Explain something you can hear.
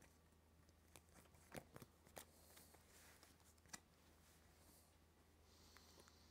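Playing cards tap and slide on a table.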